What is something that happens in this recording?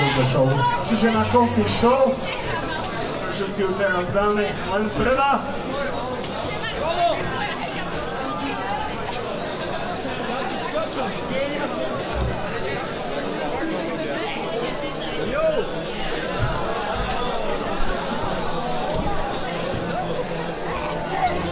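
A rock band plays loudly in an echoing hall.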